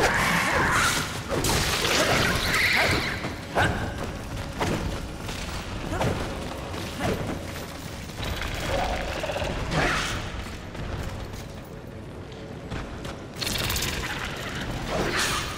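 Footsteps thud on hard ground at a run.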